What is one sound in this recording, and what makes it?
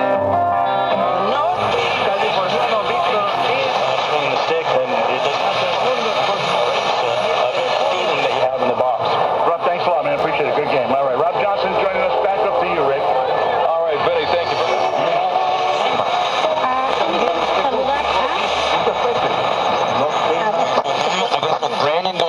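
A radio sweeps across stations, with squeals and garbled snatches of sound.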